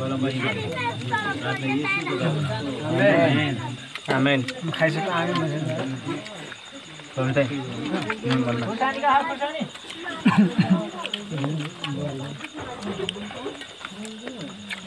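Young men talk and laugh close by, with animation.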